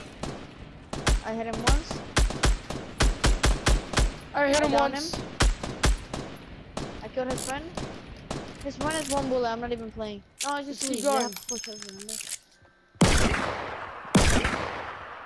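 Gunshots ring out in sharp, loud blasts.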